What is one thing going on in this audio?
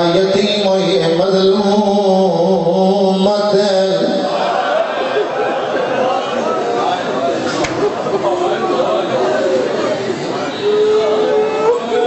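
A man chants loudly and emotionally into a microphone, heard through loudspeakers.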